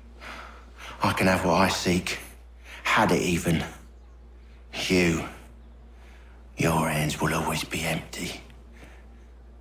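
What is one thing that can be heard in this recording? A wounded man speaks weakly with labored breath.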